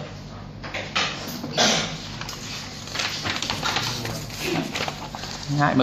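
Paper pages rustle as they are flipped.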